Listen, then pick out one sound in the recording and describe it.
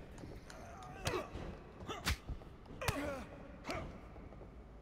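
Punches land with sharp smacks.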